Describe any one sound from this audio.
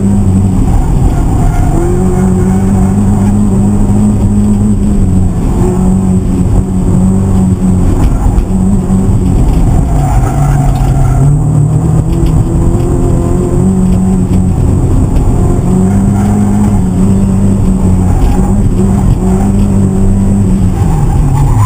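Tyres squeal on pavement during hard cornering.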